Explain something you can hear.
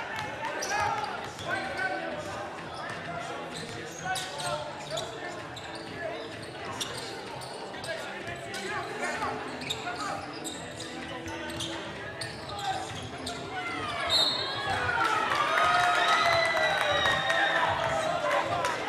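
A crowd of spectators calls out and cheers in a large echoing gym.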